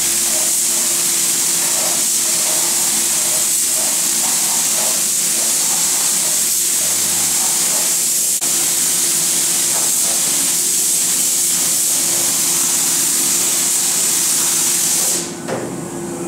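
A compressed-air spray gun hisses.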